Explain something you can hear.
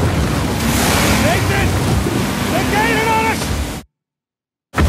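A man shouts with strain at close range.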